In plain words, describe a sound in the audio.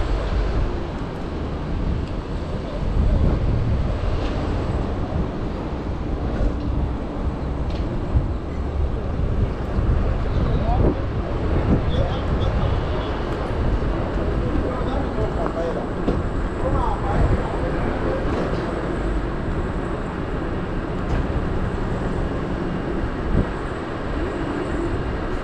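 Wind rumbles steadily as a bicycle rolls along a street.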